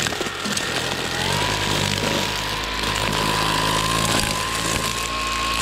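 Grass and weeds swish and rattle against a spinning trimmer line.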